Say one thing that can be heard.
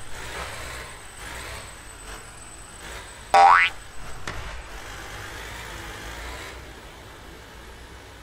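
A truck engine drones steadily as the truck drives along.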